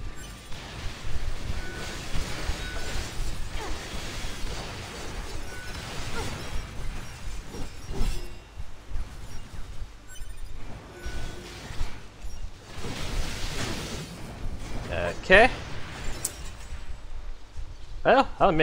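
Blades slash and clang in a fast fight.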